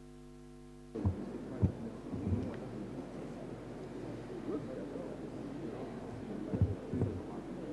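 A crowd of adult men and women murmur and chat quietly in a large room.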